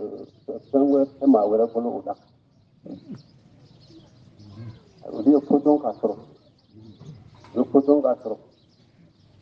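An elderly man chants in short melodic phrases, close by.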